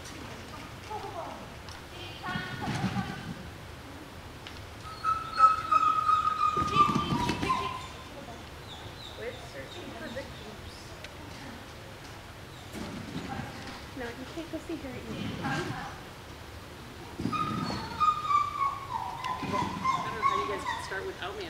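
A woman calls out commands to a dog in a large echoing hall.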